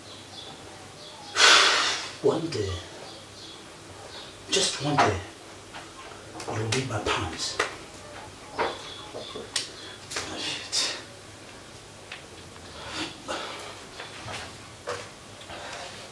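A young man murmurs a prayer quietly.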